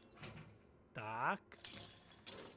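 Bolt cutters snap through a chain lock with a sharp metallic clack.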